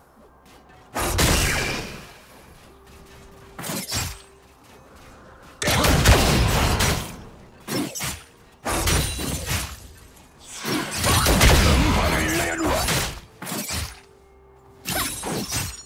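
Game spell effects and combat sounds burst and clash loudly.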